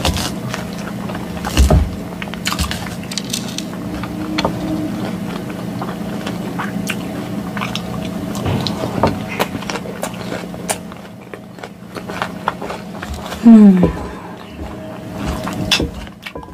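A fork scrapes and clinks against a glass bowl.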